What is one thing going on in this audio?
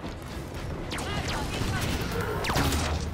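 An energy weapon fires with sharp electric zaps and swooping whooshes.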